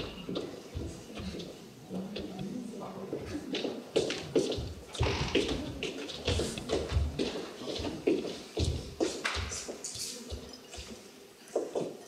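Footsteps thud on wooden stage boards.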